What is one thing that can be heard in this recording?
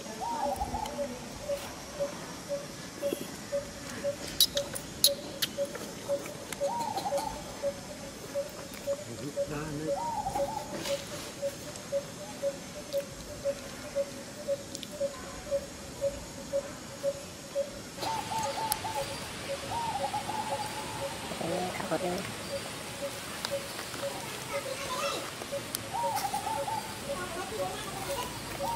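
A baby monkey squeaks in short, high chirps.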